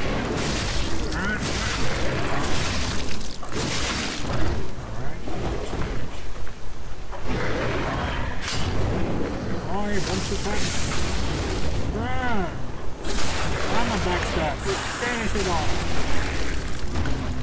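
A monster growls and roars.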